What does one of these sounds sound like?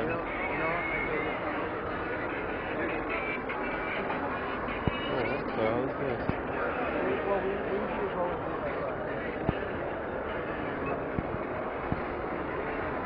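A crowd of people chatters in a large, echoing hall.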